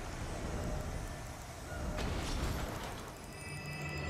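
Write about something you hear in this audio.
Menu clicks tick softly.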